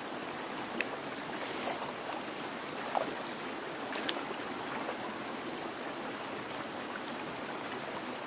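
Water splashes around feet wading in a stream.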